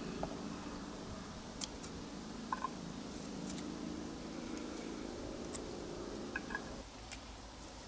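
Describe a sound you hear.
Scissors snip through plant stems.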